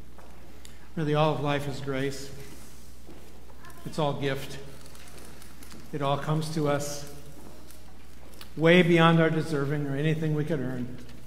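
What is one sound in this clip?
A middle-aged man speaks into a microphone over loudspeakers in a large echoing hall.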